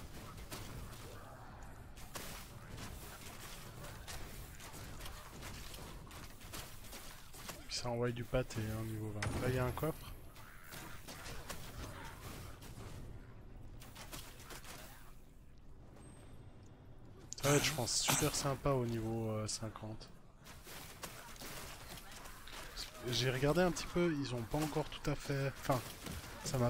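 Magic blasts crackle and whoosh in quick bursts.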